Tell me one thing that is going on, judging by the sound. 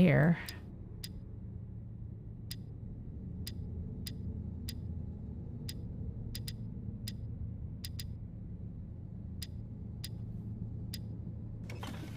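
Metal dials click as they turn one notch at a time.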